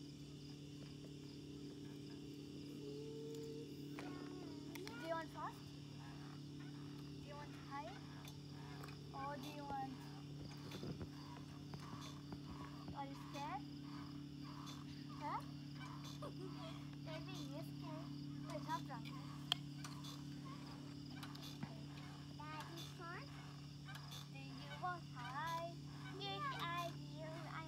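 A seesaw creaks.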